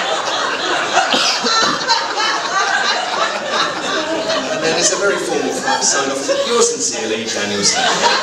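A group of people laughs.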